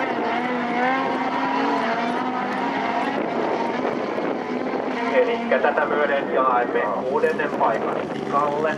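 Racing car engines whine and roar in the distance, rising and falling in pitch.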